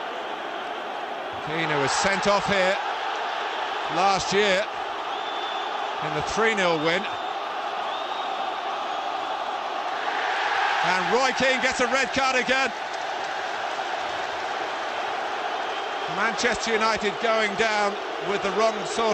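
A large crowd roars and murmurs steadily in an open stadium.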